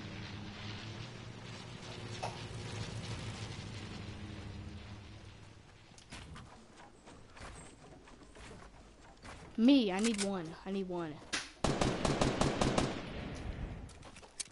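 Footsteps patter quickly over grass.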